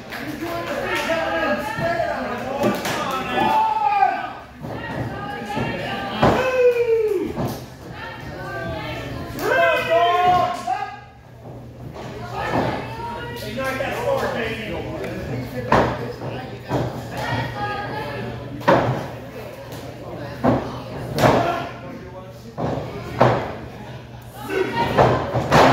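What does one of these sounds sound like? A man shouts with animation nearby, in an echoing hall.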